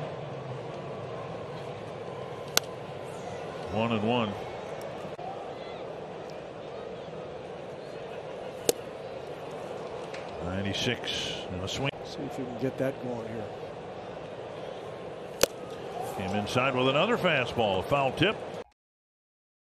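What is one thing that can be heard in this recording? A ballpark crowd murmurs outdoors.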